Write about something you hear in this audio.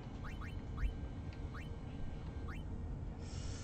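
Short rising blips sound as a game menu cursor moves.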